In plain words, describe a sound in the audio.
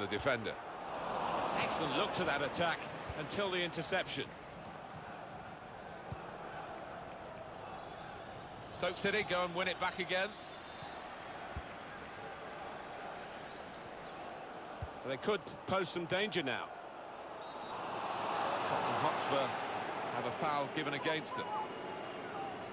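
A large stadium crowd murmurs and cheers, swelling now and then.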